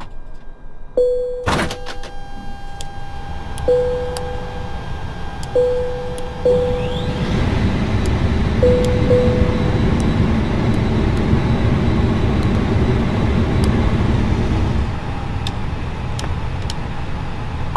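Switches click sharply on a panel.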